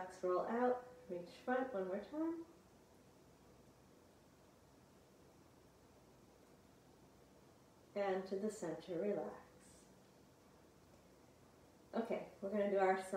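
A woman speaks calmly and clearly, close to the microphone, in short phrases with pauses.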